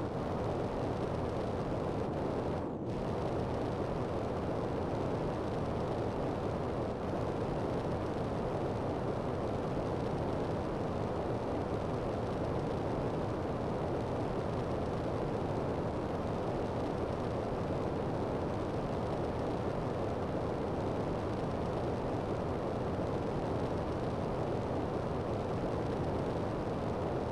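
A jetpack roars with a steady rushing thrust.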